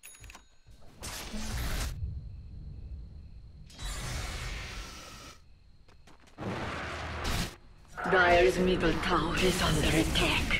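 Magic blasts and weapon clashes ring out in a fight.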